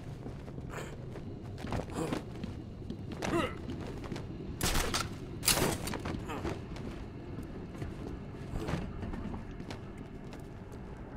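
Heavy footsteps clank on a metal grating floor.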